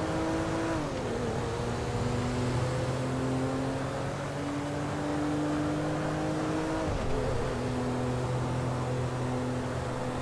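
Tyres roll on a road with a steady rushing noise.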